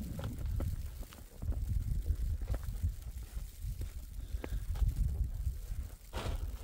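A shovel scrapes and crunches through snow.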